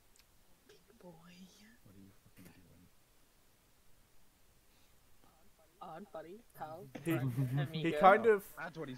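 A young man talks casually into a close microphone, laughing at times.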